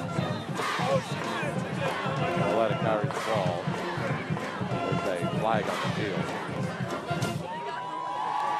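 A crowd of spectators cheers and shouts loudly nearby.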